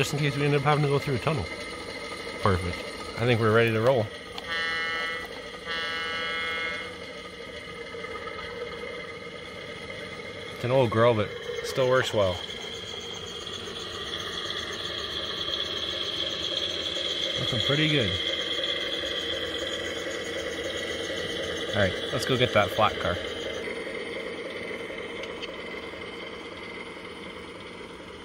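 A model diesel engine rumbles steadily.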